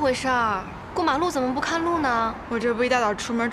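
A young woman answers with animation, close by.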